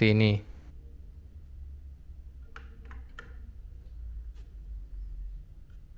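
A USB stick slides into a port.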